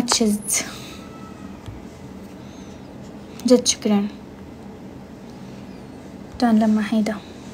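A young woman speaks in short bursts close to a microphone.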